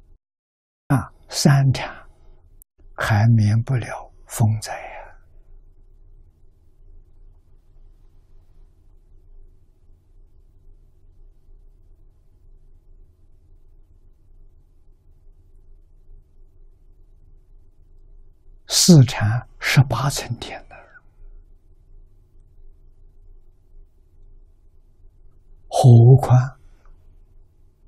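An elderly man speaks calmly into a close microphone, in short phrases with long pauses.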